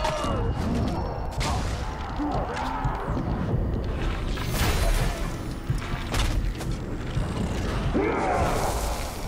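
Blades clash and heavy blows thud in a close fight.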